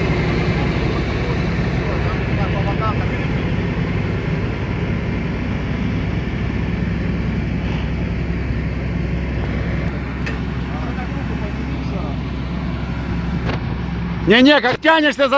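A crane engine hums steadily nearby.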